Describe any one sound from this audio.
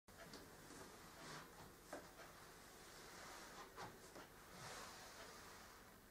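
Clothing rustles softly.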